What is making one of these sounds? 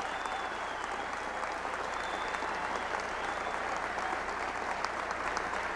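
A large crowd applauds steadily in a big hall.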